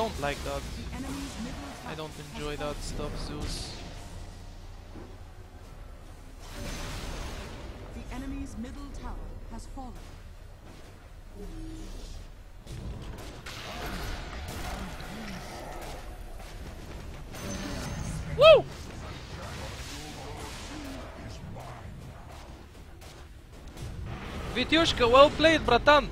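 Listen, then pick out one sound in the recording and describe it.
Video game spell effects whoosh and zap.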